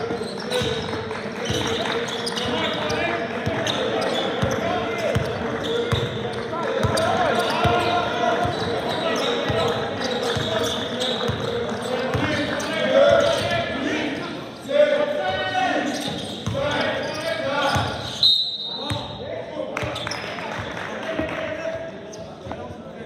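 Spectators and players shout and cheer.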